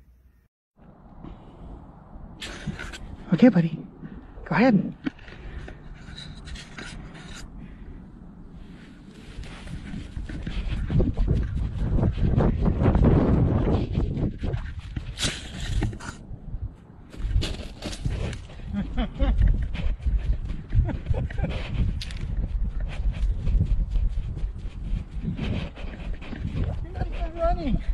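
A dog pants and snuffles very close.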